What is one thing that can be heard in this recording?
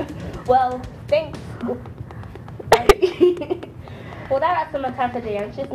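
A second young woman answers, speaking brightly close to a microphone.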